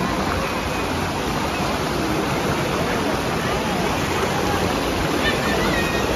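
Rushing water roars loudly over a weir.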